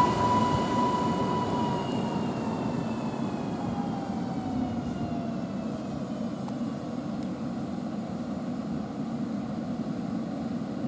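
An electric train rumbles along the rails.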